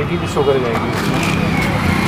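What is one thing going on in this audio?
A plastic bag rustles as a hand grabs it.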